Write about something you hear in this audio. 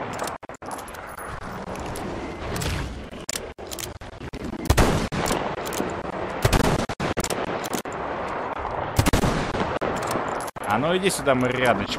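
A shotgun is reloaded with metallic clicks.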